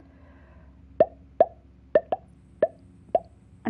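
Short soft blips sound as a menu is browsed.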